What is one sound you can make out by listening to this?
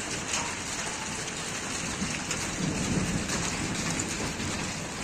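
Thunder rumbles after a lightning strike.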